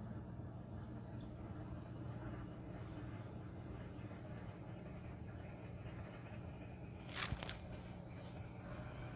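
A pump hums steadily.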